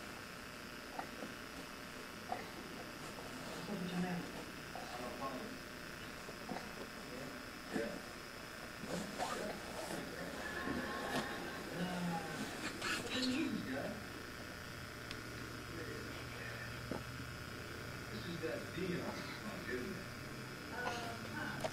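A baby rustles and shifts on crib bedding.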